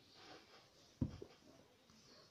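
A glass is set down with a dull knock on a hard surface.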